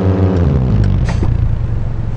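A car engine winds down as the car slows.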